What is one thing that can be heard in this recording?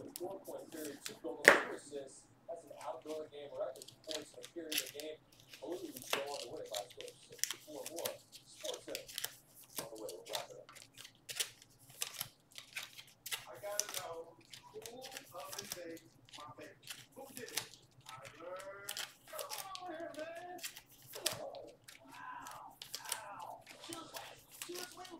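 Cards shuffle and slide against each other with soft rustles and clicks.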